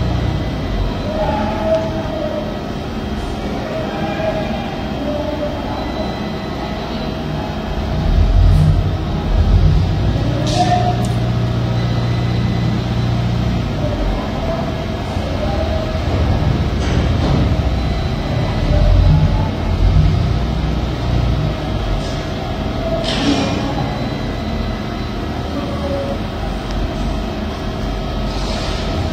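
A train rumbles slowly along the platform, its wheels clattering and squealing on the rails.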